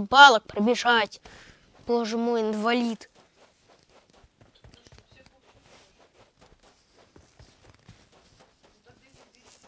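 Footsteps shuffle softly on sand.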